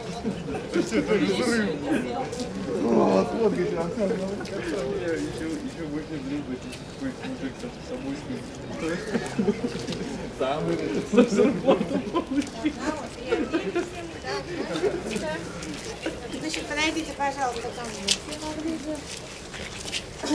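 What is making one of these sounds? A crowd of women and men talk over one another outdoors, close by.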